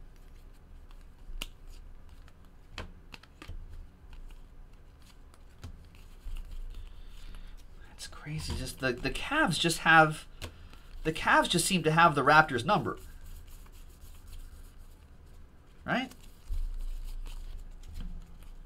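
Trading cards flick and rustle as they are shuffled by hand.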